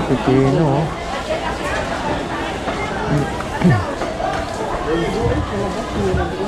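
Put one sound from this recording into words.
A busy crowd murmurs and chatters in the background.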